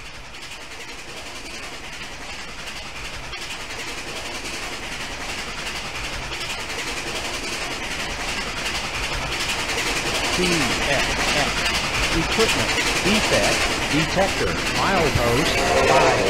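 A steam train rumbles closer and grows louder.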